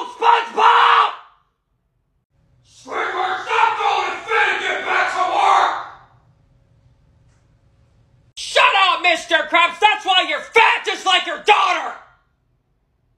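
A young man shouts angrily close by.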